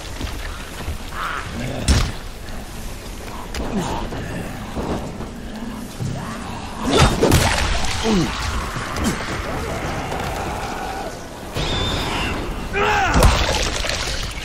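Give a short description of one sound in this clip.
Heavy blows thud against bodies.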